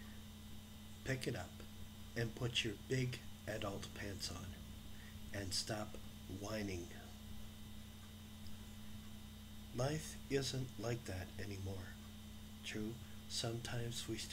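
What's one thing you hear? An older man talks calmly and close to a microphone, with pauses.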